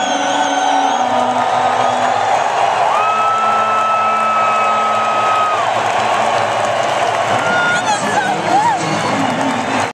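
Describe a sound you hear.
A large crowd cheers and whistles throughout.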